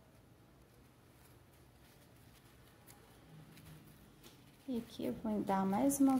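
Fabric ribbon rustles softly as it is handled.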